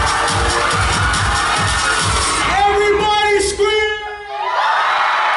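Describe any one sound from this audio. Loud music with a heavy beat plays over loudspeakers.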